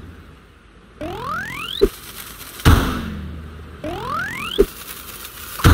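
A whistling tone rises quickly, ending in a short pop.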